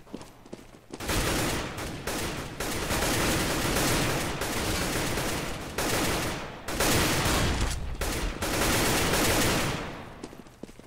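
Rifle shots fire in rapid bursts.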